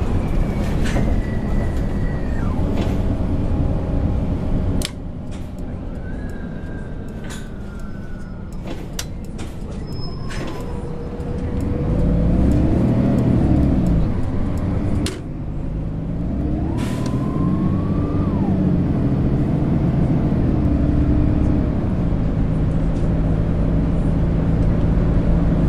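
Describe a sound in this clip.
A bus engine hums and rises and falls in pitch as the bus drives.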